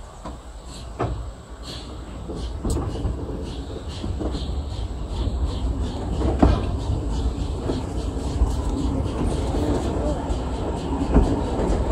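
Metal wheels rumble and clack along railway tracks, growing louder.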